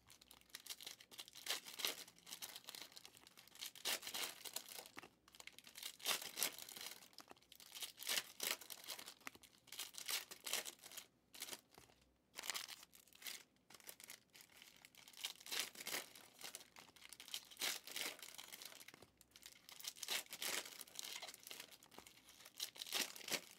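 Cards rustle and slap as they are shuffled and sorted by hand.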